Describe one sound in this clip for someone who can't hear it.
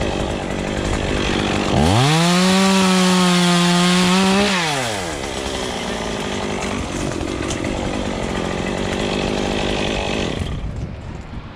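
A chainsaw engine revs loudly close by, then idles.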